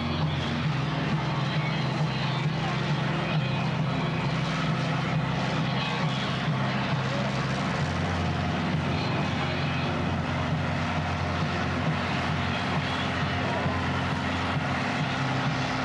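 A car engine roars loudly at high revs.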